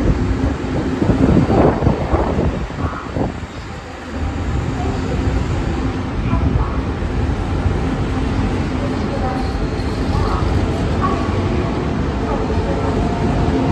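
A train rumbles past close by, its wheels clattering on the rails.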